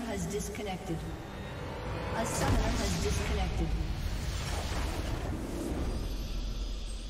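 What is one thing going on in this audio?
Video game battle effects clash and burst loudly.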